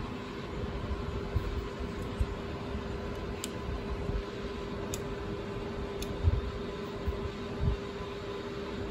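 Fingers handle a small metal object with soft bumps.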